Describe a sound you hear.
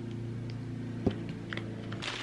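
A squeeze bottle squirts sauce.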